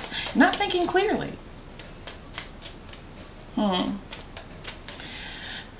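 Playing cards are shuffled close by, with quick soft flicks.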